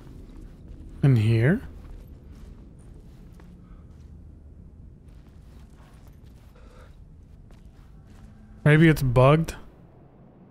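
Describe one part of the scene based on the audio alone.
A man speaks briefly and loudly into a close microphone.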